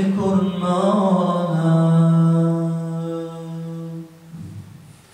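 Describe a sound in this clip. A young man sings a long, held melodic line into a close microphone, and the note fades out.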